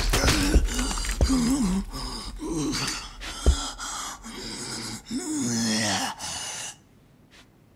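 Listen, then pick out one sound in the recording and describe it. A man grunts and groans in pain.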